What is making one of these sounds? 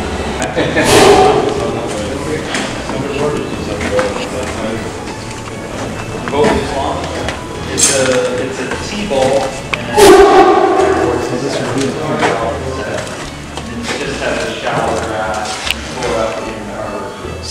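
A man talks calmly close by in a large echoing room.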